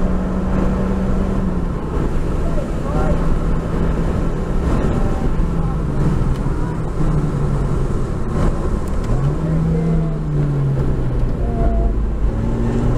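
Wind and road noise rush steadily around the car.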